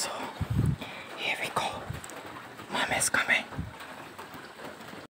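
A young man talks with animation, very close to the microphone.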